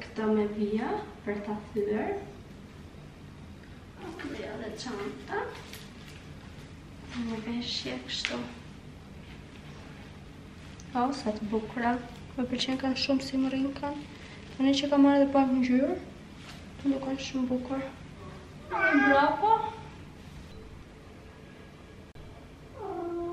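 A young woman talks casually, close to the microphone.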